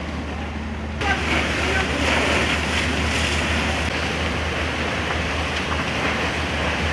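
Water from hoses sprays with a loud, steady hiss.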